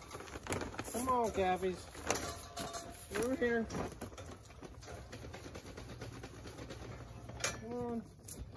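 Cattle moo nearby.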